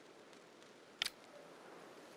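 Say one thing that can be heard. A short menu chime sounds as a page turns.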